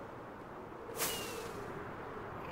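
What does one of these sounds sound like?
A firework launches with a whoosh.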